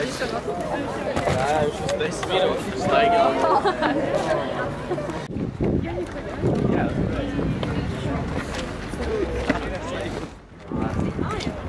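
A group of young people talk to one another outdoors.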